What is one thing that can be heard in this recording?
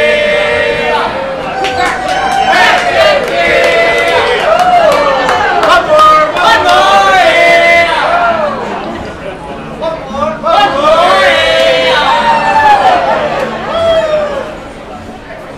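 Men shout loudly in a call-and-response chant nearby.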